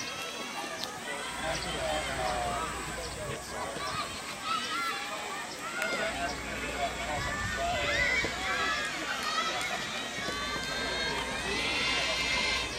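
Young girls call out in the distance, outdoors.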